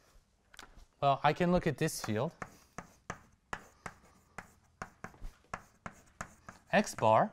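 A man speaks calmly, reading out as he writes.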